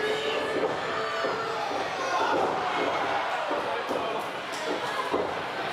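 Bodies thud onto a wrestling ring's canvas.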